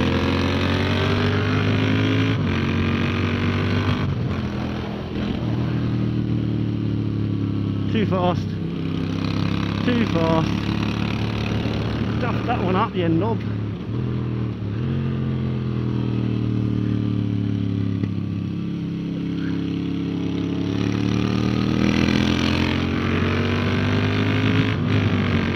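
A motorcycle engine roars close by, its pitch rising and falling as it speeds up and slows down.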